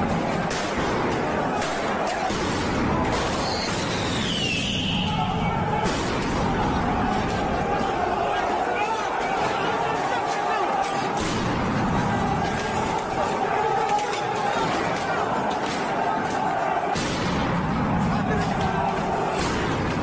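A crowd of men shouts and cries out in a large echoing hall.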